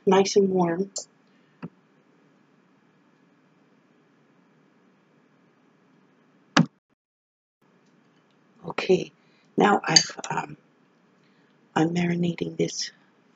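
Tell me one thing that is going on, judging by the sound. An older woman talks calmly and close by, in short bursts with pauses.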